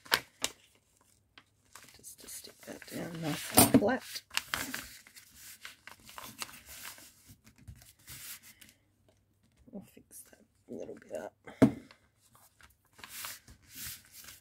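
Hands smooth and press paper flat with a soft rustle.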